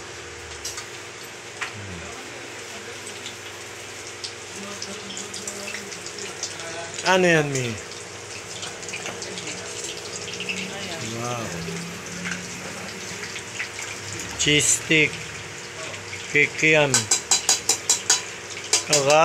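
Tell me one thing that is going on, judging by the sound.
Metal tongs clink against a metal pot.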